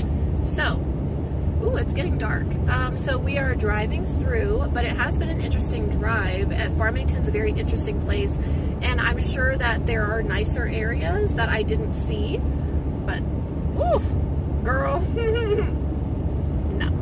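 A young woman talks casually, close by.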